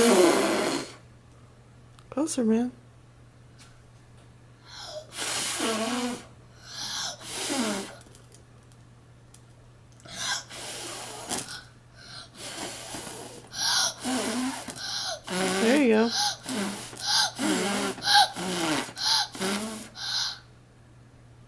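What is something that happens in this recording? A young boy talks and exclaims excitedly, up close.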